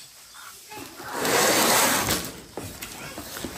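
Cardboard boxes rustle as they are handled.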